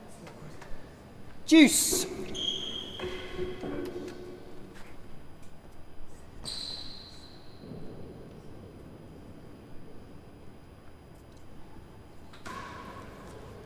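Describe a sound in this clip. A racket strikes a ball with sharp smacks that echo in a large hall.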